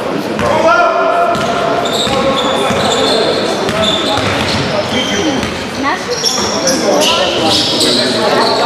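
Sneakers squeak sharply on a hard floor in an echoing hall.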